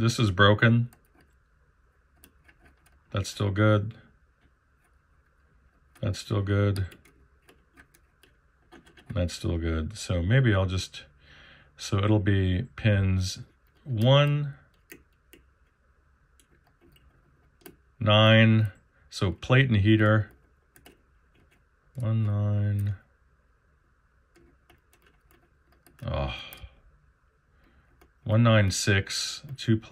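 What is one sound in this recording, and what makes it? A metal hook scrapes and clicks against plastic and metal parts.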